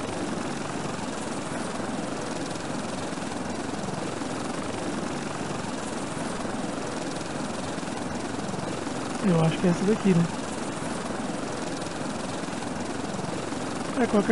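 Wind rushes steadily past an open aircraft in flight.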